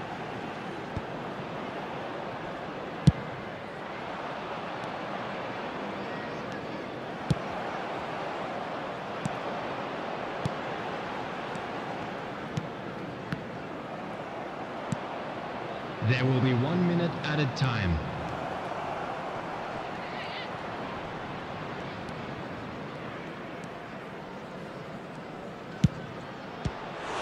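A football is kicked with short, sharp thumps now and then.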